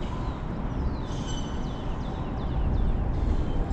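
A fishing line whizzes off a spinning reel.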